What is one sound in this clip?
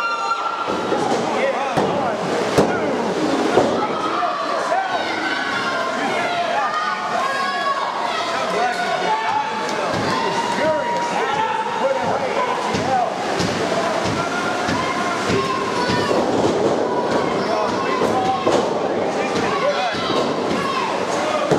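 Bodies thud onto a wrestling ring's canvas.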